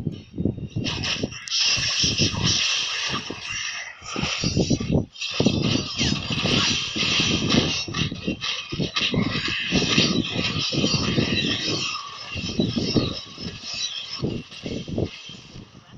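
Magic blasts and sword strikes crackle and clash rapidly in a game battle.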